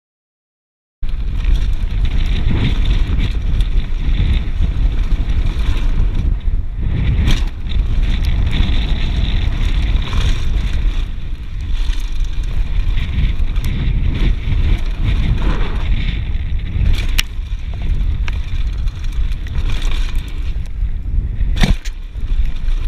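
Wind buffets loudly past the rider.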